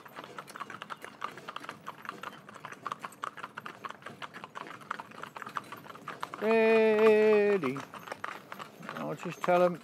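Cart wheels roll on asphalt.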